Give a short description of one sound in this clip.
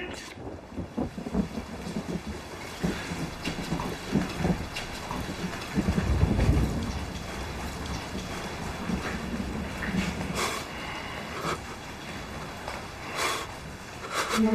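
A middle-aged man speaks tensely, close by.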